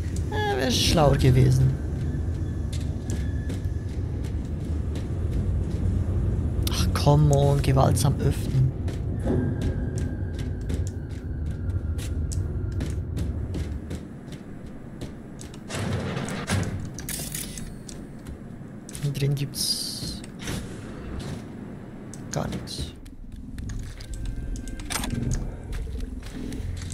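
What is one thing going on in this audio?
Footsteps walk steadily across a hard floor.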